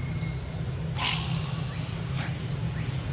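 A young monkey gives short, high squeals.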